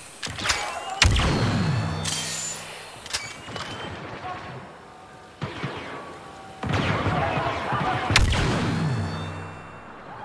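Explosions boom with deep rumbling echoes.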